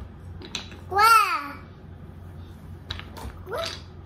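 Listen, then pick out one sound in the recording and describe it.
A young toddler vocalizes with a rising and falling cry.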